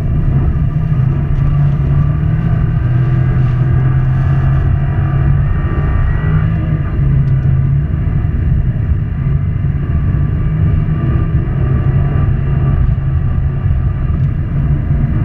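A turbocharged flat-four rally car engine roars under hard acceleration, heard from inside the car.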